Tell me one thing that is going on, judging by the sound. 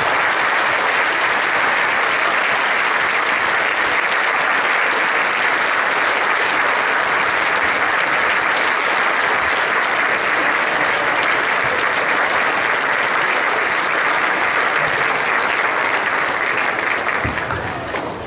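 A concert band plays loudly in a large hall.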